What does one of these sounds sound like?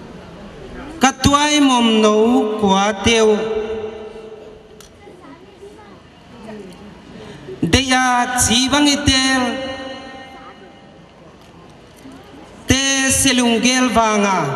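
A middle-aged man sings slow, drawn-out phrases through a loudspeaker.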